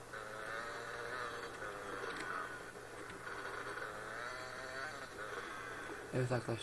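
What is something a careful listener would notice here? A dirt bike engine revs and whines steadily.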